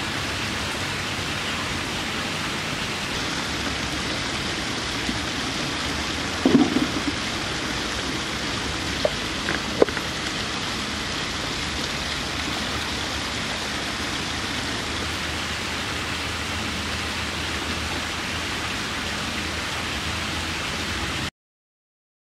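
Water splashes steadily down a small waterfall nearby.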